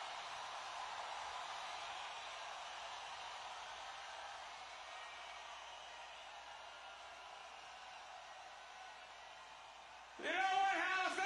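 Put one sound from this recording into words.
A large crowd cheers and roars in a large echoing arena.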